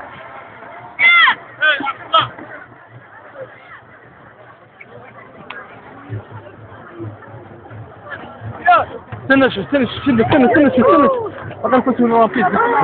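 Women in the crowd call out loudly and shrilly close by.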